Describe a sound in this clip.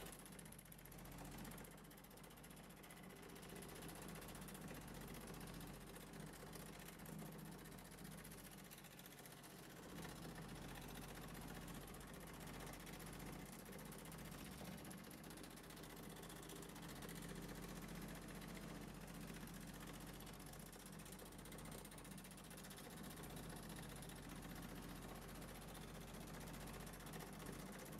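A drill bit grinds through sheet metal.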